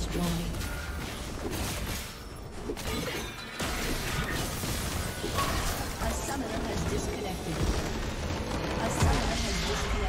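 Game combat effects clash and zap rapidly.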